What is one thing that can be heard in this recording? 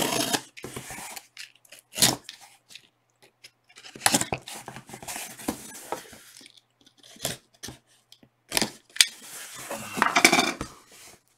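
A cardboard box thumps and scrapes as it is turned over.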